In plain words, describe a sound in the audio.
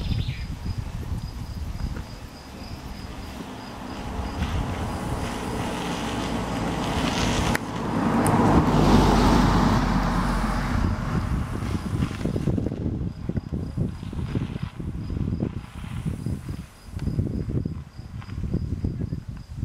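Wind gusts and rustles leaves outdoors.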